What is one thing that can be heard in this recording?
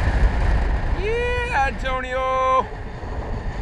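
A flight instrument beeps quickly in rising tones.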